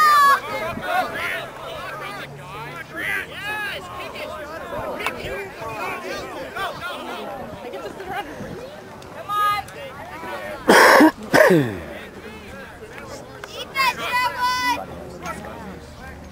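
Players shout to one another across an open field.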